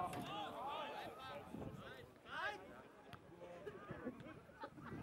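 Young male football players shout to each other outdoors.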